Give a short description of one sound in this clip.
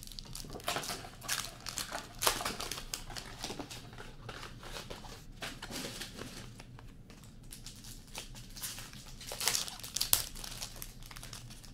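A foil wrapper crinkles and tears as a card pack is opened.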